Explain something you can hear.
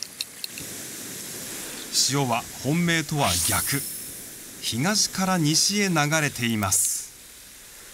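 Waves wash against rocks.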